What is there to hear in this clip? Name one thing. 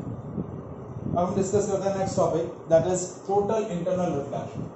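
A man speaks calmly, like a teacher explaining, close by.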